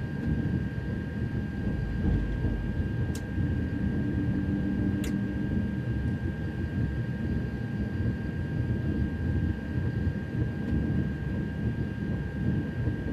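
An electric train rumbles steadily along the tracks.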